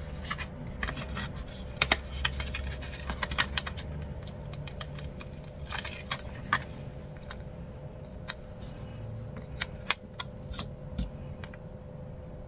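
Paper sticker sheets rustle and crinkle in hands.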